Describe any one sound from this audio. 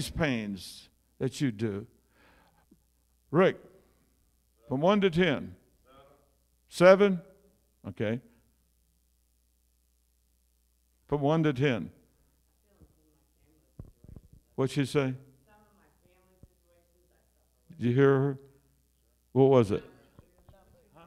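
An elderly man speaks with animation through a microphone, in bursts with long pauses, in an echoing room.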